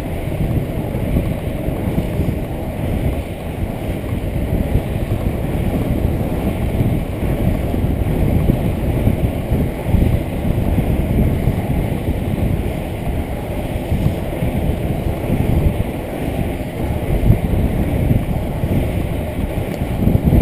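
Inline skate wheels roll on asphalt at speed.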